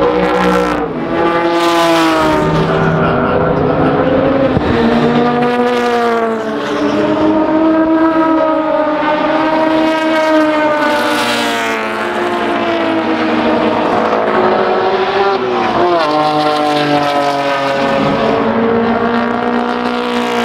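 Racing car engines roar loudly as cars speed past one after another.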